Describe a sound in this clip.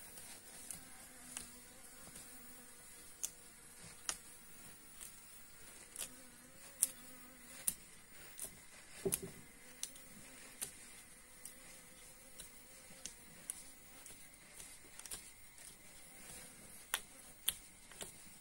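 An uncapping fork scrapes wax cappings off a honeycomb with soft, wet crackles.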